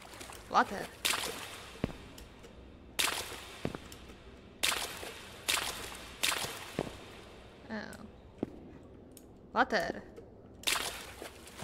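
Footsteps splash through shallow water in an echoing hall.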